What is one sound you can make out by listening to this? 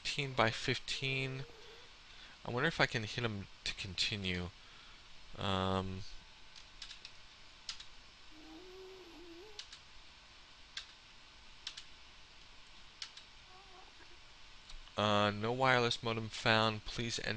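A man talks casually and close to a microphone.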